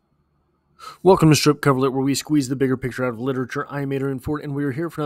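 A man speaks calmly and close through a microphone.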